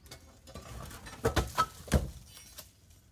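A concrete slab falls and crashes onto rubble.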